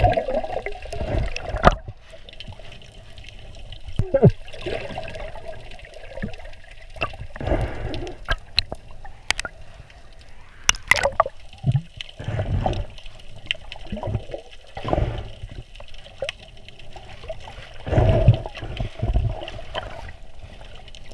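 Water swishes and gurgles, heard muffled from underwater.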